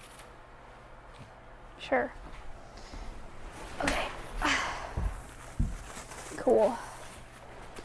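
Paper rustles and crinkles as it is unfolded.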